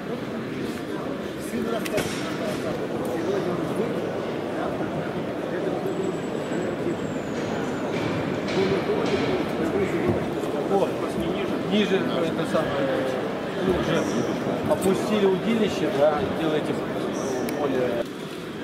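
A crowd of men and women chatter in a large, echoing hall.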